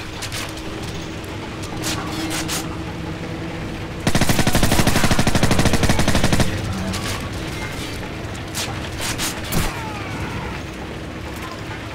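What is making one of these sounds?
A gun magazine clicks as it is swapped.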